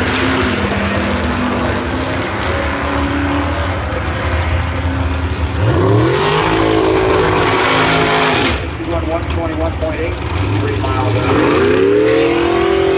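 Race car engines rumble loudly nearby.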